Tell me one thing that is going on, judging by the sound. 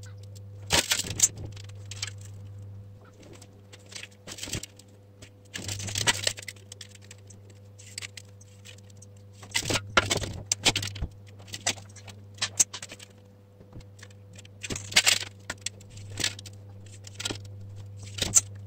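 A thin metal sheet crinkles and scrapes under hands.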